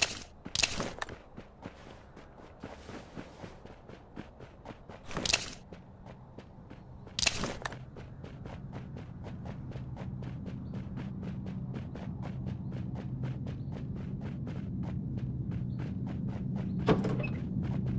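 Footsteps thud quickly and steadily on the ground.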